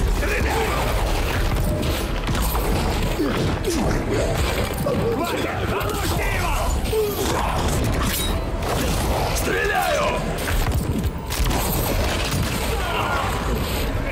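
Debris crashes and scatters across the floor.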